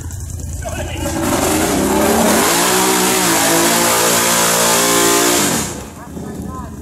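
A big-bore ATV engine revs hard as its tyres churn through thick mud.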